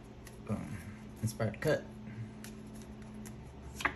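Playing cards shuffle and flick softly by hand.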